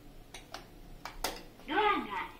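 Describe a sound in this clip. A lift button clicks as a finger presses it.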